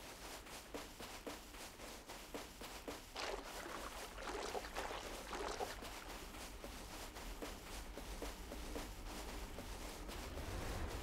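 Small waves lap gently at the shore.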